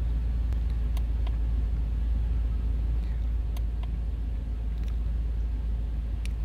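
Plastic buttons click softly as a finger presses them.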